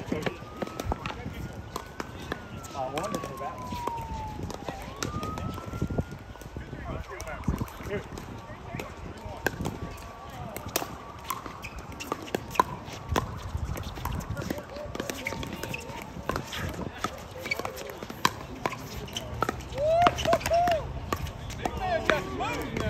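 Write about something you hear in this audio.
Paddles strike a plastic ball with sharp pops, outdoors.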